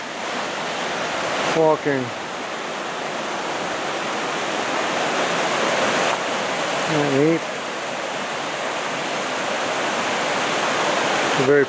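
A small creek splashes and burbles as it cascades over rocks.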